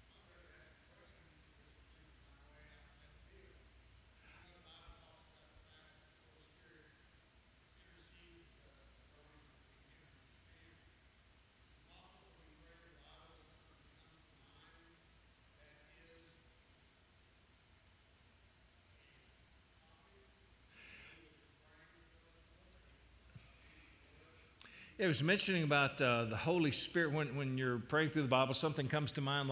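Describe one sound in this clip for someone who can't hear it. An elderly man speaks calmly into a microphone, faint at first and suddenly much louder.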